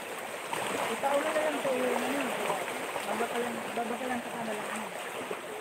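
A child calls out nearby in the water.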